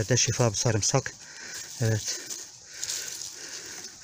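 Dry leaves and soil rustle as hands dig.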